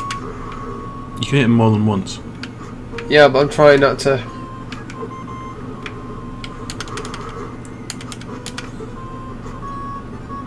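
Electronic game music beeps and chirps steadily.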